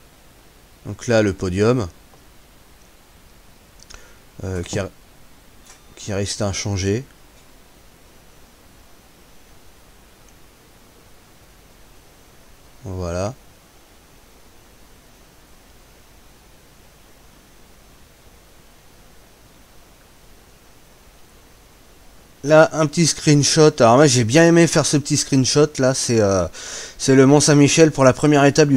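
A man talks calmly and close to a microphone, in short bursts and then at length.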